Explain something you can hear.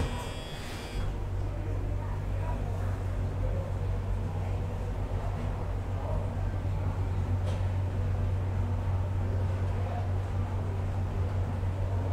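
An elevator motor hums steadily as the car rises.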